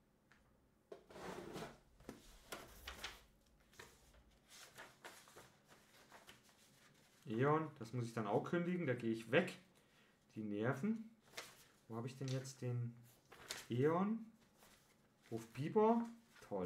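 Paper pages rustle as a man leafs through a booklet.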